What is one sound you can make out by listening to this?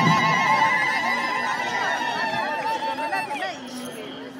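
A crowd of women chants loudly close by.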